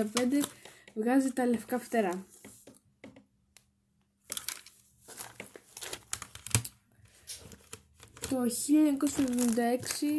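A plastic case rustles and clicks in hands.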